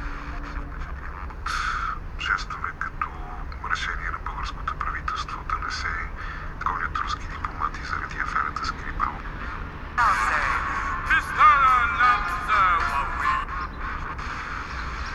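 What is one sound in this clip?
An FM radio station plays through a mobile phone's small loudspeaker.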